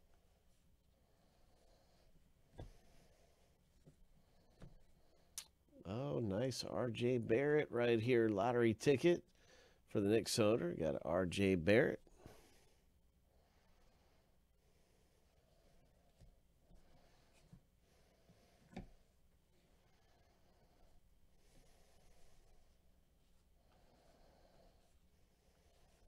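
Cards rustle and slide softly against each other in gloved hands.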